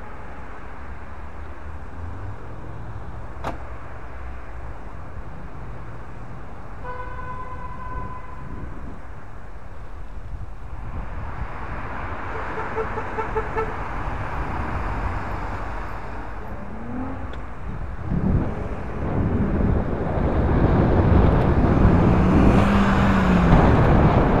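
Wind rumbles steadily against the microphone.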